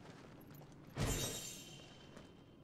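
A chest opens with a thud.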